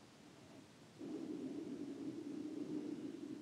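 A man chants a long, steady low tone.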